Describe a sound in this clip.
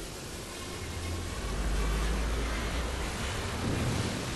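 A magical burst whooshes and shimmers.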